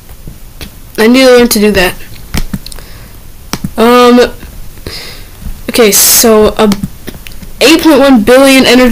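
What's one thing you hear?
A boy speaks with animation into a nearby microphone.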